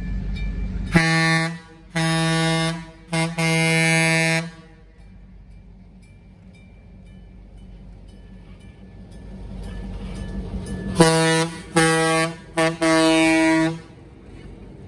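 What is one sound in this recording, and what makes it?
A diesel locomotive's horn blasts loudly in long and short bursts.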